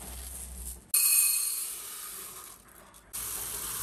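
Rice rustles as a scoop digs into it.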